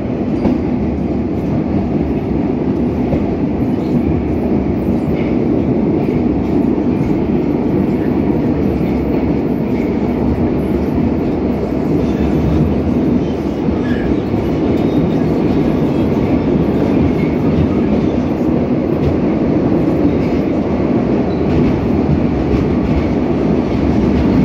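A subway train rumbles and roars steadily along the tracks.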